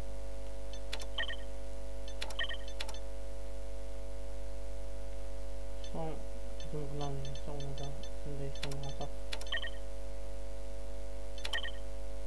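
Soft interface clicks sound, each followed by a short chime.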